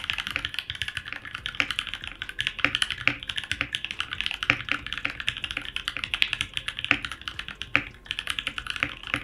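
Keys on a keyboard clack quickly and steadily under fast typing.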